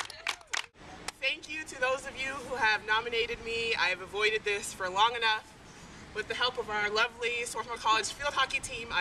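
A young woman speaks outdoors with animation.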